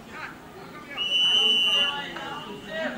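A referee's whistle blows once, shrill and short.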